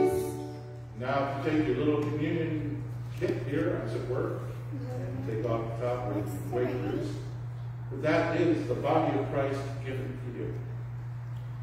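An elderly man speaks calmly in a large echoing hall.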